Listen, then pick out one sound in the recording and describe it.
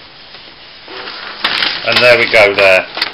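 Paper rustles as a hand pulls a printed sheet out.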